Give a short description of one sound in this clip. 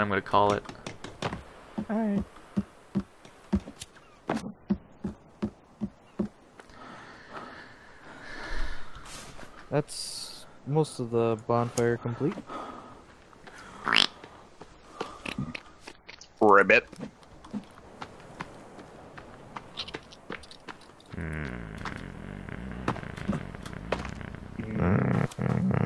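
Footsteps crunch steadily on dirt and grass.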